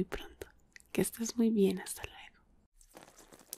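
A woman speaks softly and close to a microphone.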